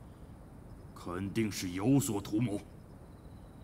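A man speaks in a low, stern voice close by.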